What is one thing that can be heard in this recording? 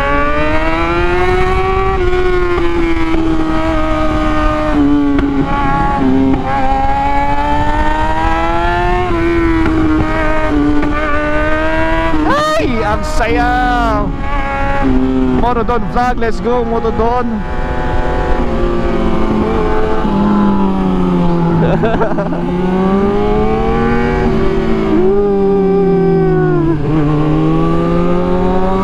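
A motorcycle engine drones and revs up and down through the gears close by.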